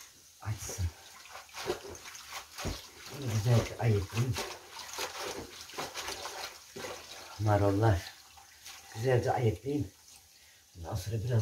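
Water and wet leaves swish as greens are rinsed in a basin.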